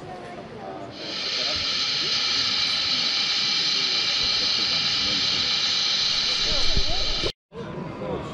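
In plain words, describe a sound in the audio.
A model steam locomotive hisses loudly, letting off steam.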